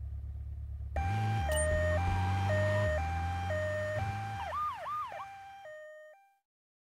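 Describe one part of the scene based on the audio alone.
An ambulance siren wails as the ambulance drives off.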